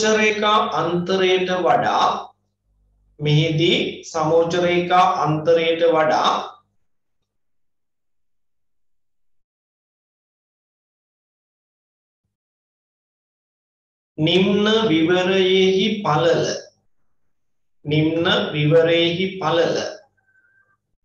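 A man speaks calmly and clearly into a close microphone, in bursts with long pauses.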